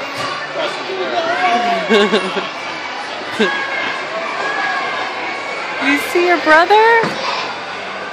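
Children shout and squeal in a large echoing rink.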